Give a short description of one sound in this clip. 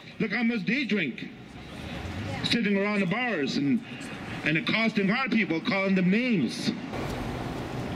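A man speaks loudly through a megaphone outdoors.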